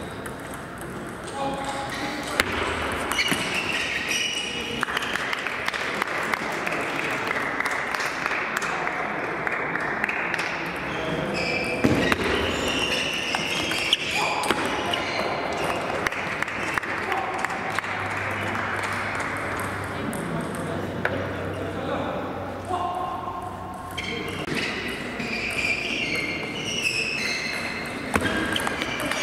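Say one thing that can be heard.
A table tennis ball clicks sharply off paddles and the table in quick exchanges.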